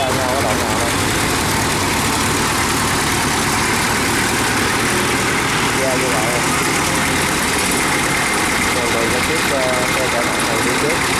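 A small diesel engine chugs loudly and steadily close by.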